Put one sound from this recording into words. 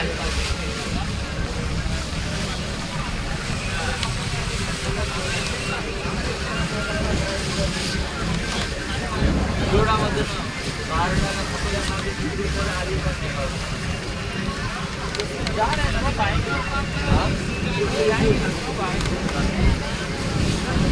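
Wind buffets loudly outdoors throughout.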